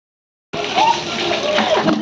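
Water splashes out of a bucket.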